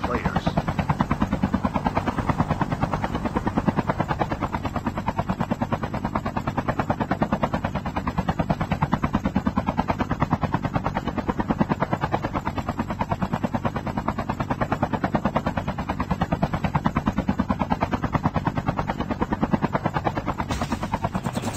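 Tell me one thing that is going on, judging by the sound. A helicopter's rotor blades thump rapidly and steadily close by.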